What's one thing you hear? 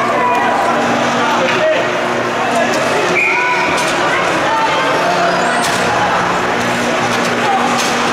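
A crowd murmurs and calls out in a large echoing rink.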